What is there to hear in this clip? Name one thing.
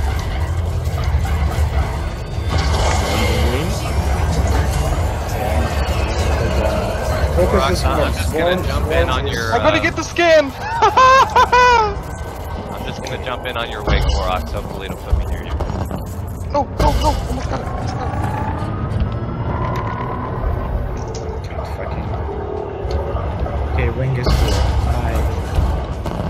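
A spacecraft engine rumbles low and steadily.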